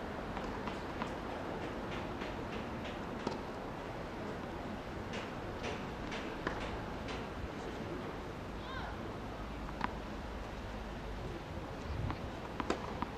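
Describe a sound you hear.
Tennis balls are struck with rackets.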